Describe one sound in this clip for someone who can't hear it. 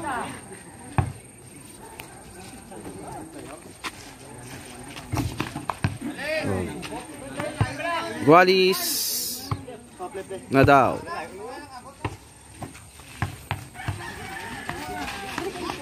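A basketball bounces on hard dirt.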